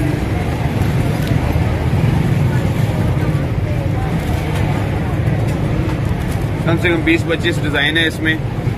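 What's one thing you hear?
Plastic wrapping crinkles as cards are handled.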